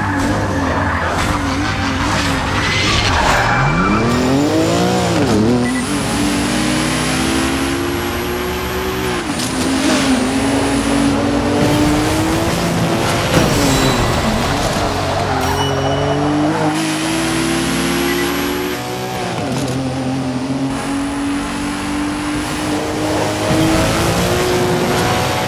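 A car engine revs high and roars through repeated gear changes.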